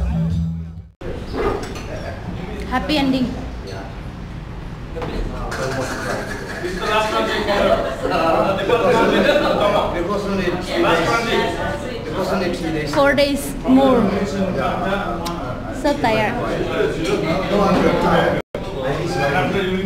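Several men chat casually close by.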